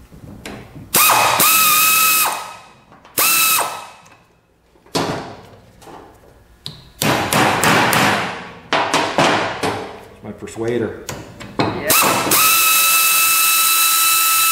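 An air tool whines loudly in short bursts.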